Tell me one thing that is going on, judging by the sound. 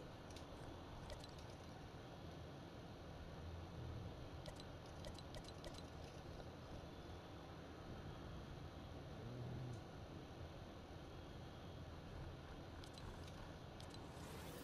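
Short soft clicks sound as menu items are selected.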